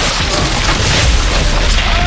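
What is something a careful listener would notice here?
A large explosion bursts with a deep boom.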